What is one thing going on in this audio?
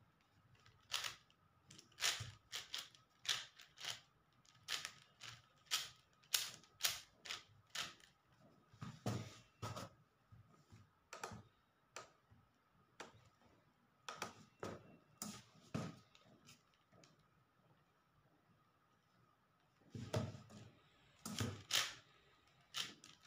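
A puzzle cube clicks and clatters as it is turned quickly.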